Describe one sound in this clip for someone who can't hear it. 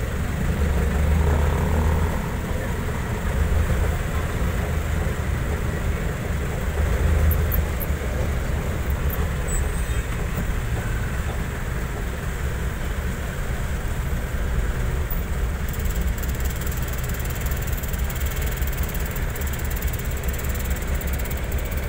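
A vehicle's engine rumbles and rattles steadily from inside the cab.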